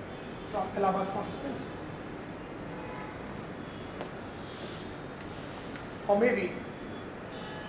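A middle-aged man speaks with animation into a microphone, heard through a loudspeaker in an echoing hall.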